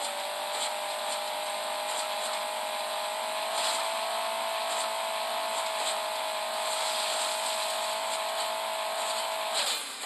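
A cartoon car engine hums steadily at a high pitch.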